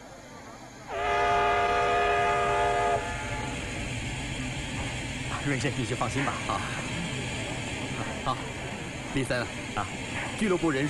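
Steam hisses from a locomotive.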